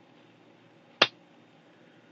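A hand taps on a laptop's plastic case with a sharp click.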